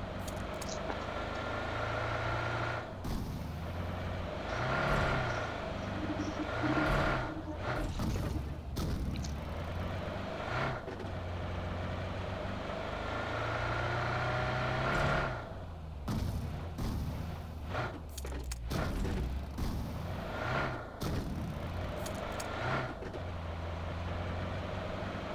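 A car engine hums and revs as the car drives over rough ground.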